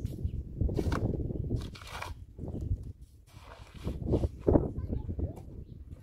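A shovel scrapes and scoops gravel into a wheelbarrow.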